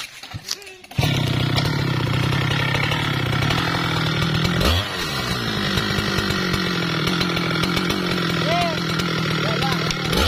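A chainsaw engine drones loudly and steadily.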